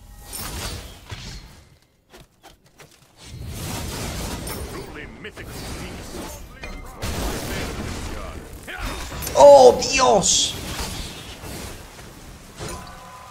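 Fantasy battle effects whoosh and clash.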